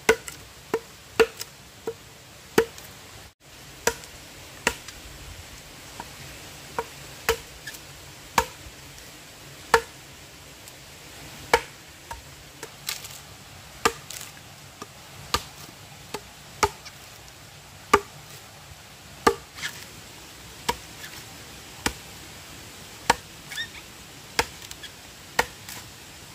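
A blade chops into wood with sharp, regular knocks.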